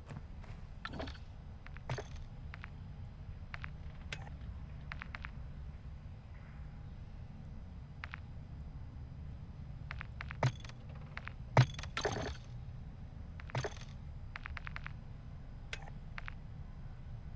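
Short game menu clicks sound again and again.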